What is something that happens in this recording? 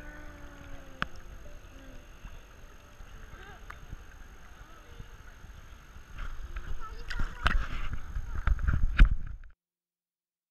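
Water splashes and laps around a child in a pool.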